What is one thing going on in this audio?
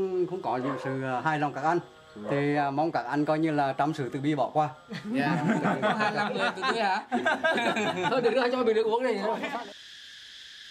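Elderly men talk and laugh close by.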